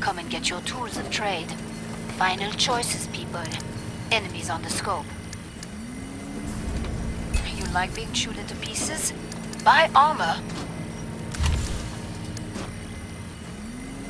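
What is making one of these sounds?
Short electronic menu clicks sound now and then.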